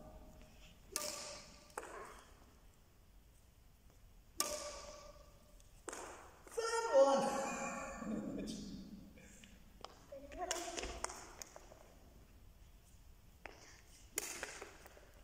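A racket smacks a shuttlecock in a large echoing hall.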